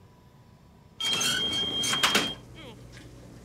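An oven door creaks open.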